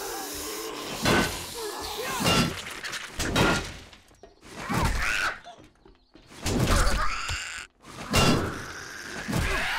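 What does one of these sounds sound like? Heavy blows thud repeatedly against a body.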